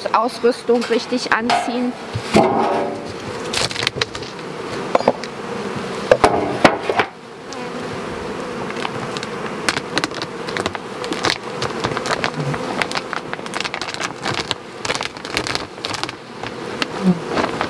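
Wooden hive parts knock and scrape.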